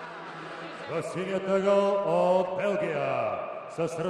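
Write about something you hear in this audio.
A man announces loudly over a loudspeaker in a large echoing hall.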